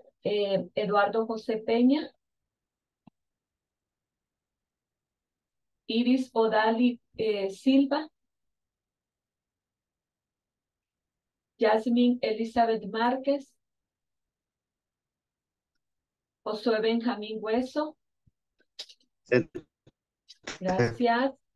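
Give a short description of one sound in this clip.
A woman speaks calmly through an online call, in short phrases with pauses.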